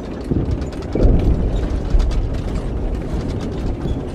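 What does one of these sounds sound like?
An explosion booms in the distance and rumbles.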